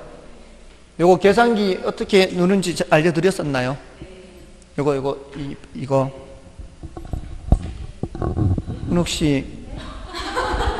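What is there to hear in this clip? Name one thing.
A man speaks with animation into a handheld microphone, in a lightly echoing room.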